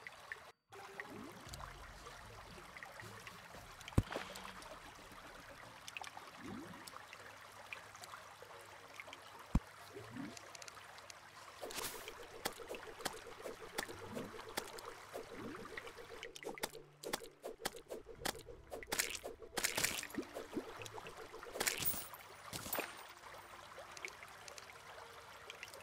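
Short video game sound effects pop and click.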